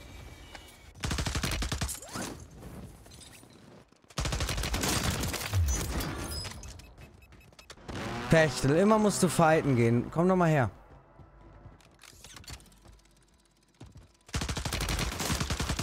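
Rapid gunfire rattles in quick bursts.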